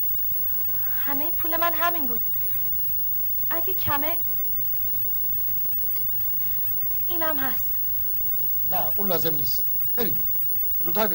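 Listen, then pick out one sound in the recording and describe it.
A woman speaks with emotion, close by.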